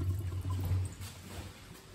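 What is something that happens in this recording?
A toilet flushes with rushing, swirling water.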